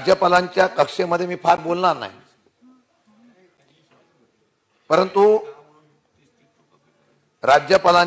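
A man speaks forcefully into a microphone, with pauses between phrases.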